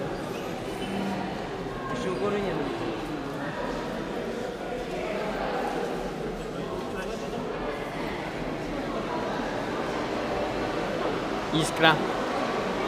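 A crowd of people murmurs and talks nearby in a large echoing hall.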